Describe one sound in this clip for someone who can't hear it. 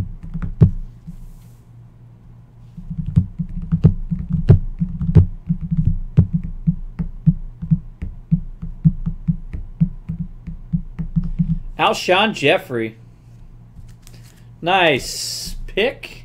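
Trading cards slide and tap on a table.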